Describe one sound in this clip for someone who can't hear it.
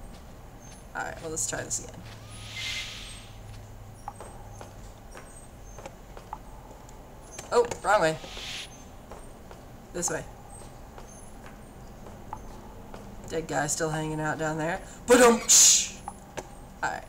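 A young woman talks quietly into a headset microphone.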